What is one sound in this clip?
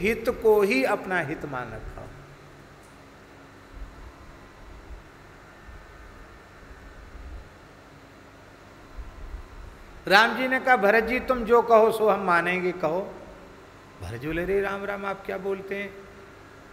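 An elderly man speaks calmly into a microphone, with long pauses.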